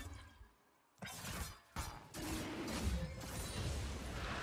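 Game spell effects whoosh and crackle during a fight.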